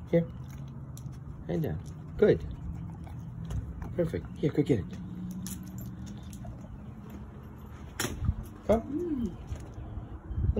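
Metal tags on a dog's collar jingle.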